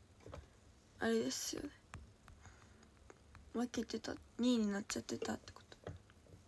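A young woman speaks briefly and softly, close by.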